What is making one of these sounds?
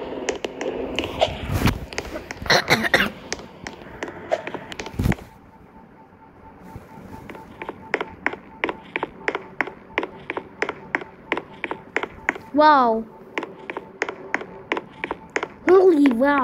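Quick footsteps patter steadily on hard ground.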